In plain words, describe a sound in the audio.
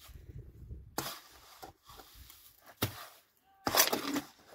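A shovel scrapes and mixes wet cement in a metal wheelbarrow.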